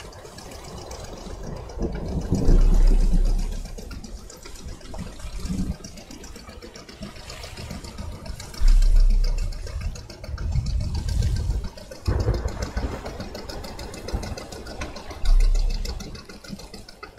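Waves splash against a boat's hull.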